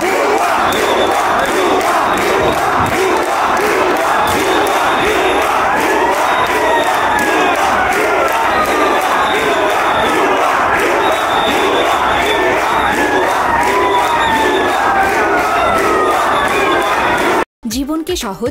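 A large outdoor crowd of young men chants in unison.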